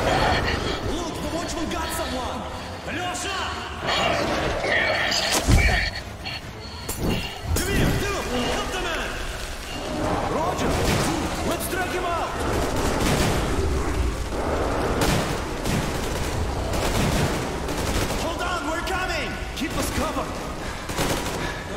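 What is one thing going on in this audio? Men shout to each other with urgency.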